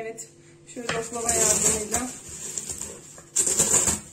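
A wooden rolling pin rolls over crunching cornflakes.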